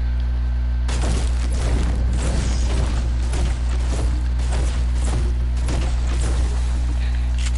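A pickaxe chops into wood with quick, sharp knocks.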